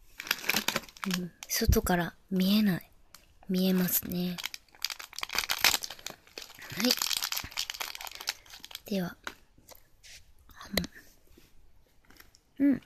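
Plastic candy wrappers crinkle and rustle between fingers.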